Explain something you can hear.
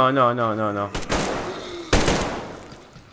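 An assault rifle fires shots.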